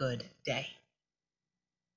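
A young woman speaks briefly through a microphone.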